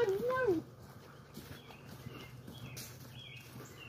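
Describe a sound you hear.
Footsteps crunch on dry leaves and dirt.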